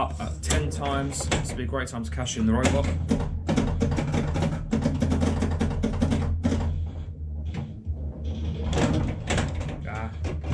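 A pinball machine clicks and rattles.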